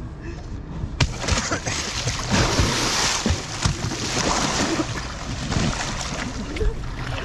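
Water splashes and churns as a kayak rolls over.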